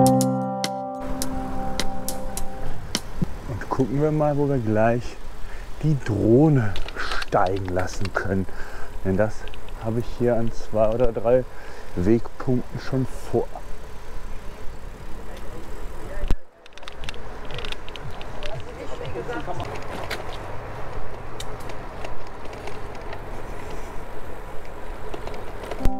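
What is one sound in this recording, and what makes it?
Bicycle tyres roll steadily over asphalt.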